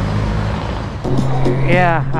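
A motorcycle engine drones louder at speed.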